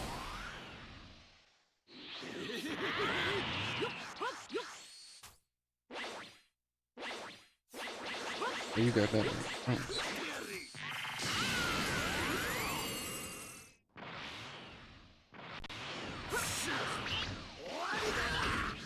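Energy blasts roar and crackle in bursts.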